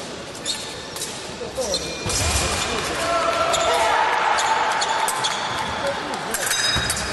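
Fencers' footsteps patter on a wooden floor.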